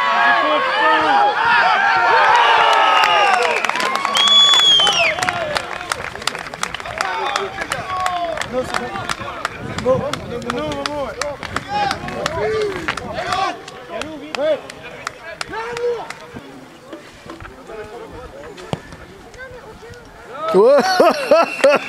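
A small crowd of spectators cheers and shouts outdoors.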